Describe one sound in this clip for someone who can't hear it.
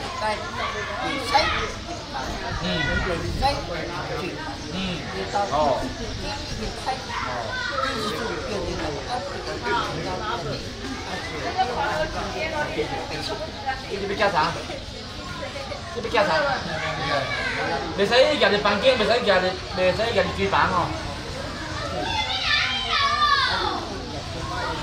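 A crowd of men chatter and call out close by.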